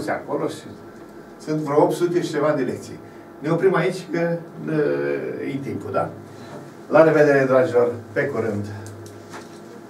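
An elderly man speaks with animation into a clip-on microphone.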